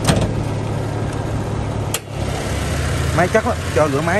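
A car hood latch clicks and the hood swings open.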